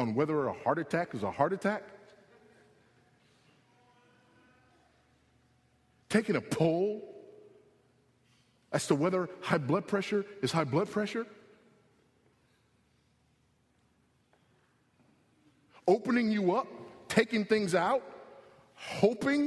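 A man preaches with animation into a microphone, with long pauses.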